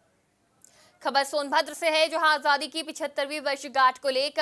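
A young woman speaks clearly and briskly into a microphone.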